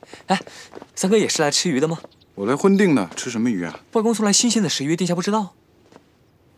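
A young man asks cheerfully, close by.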